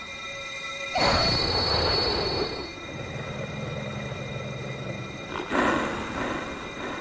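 A wolf growls and snarls loudly.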